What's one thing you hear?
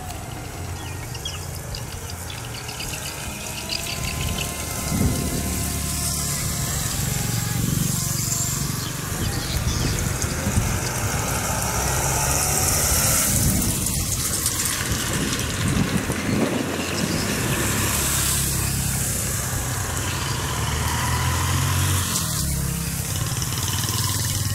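Wind rumbles over the microphone outdoors.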